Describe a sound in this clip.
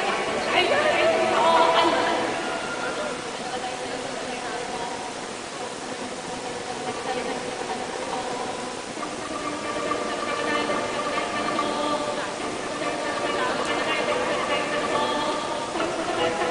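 An orchestra plays strings and winds.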